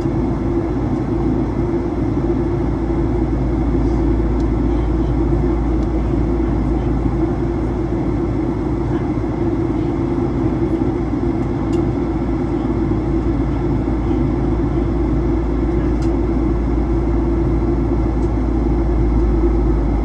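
An aircraft's engines drone steadily, heard from inside the cabin.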